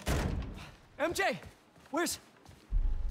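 A young man speaks with urgency.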